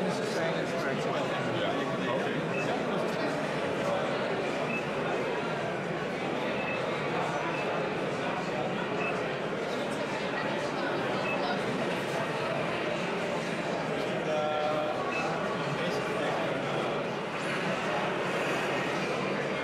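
A crowd chatters steadily all around in a large, busy hall.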